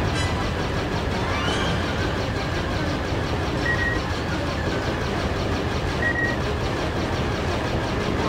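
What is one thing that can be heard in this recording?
Laser cannons fire in quick bursts.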